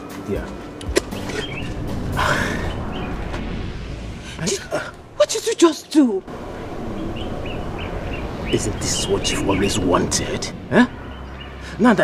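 A woman speaks angrily close by.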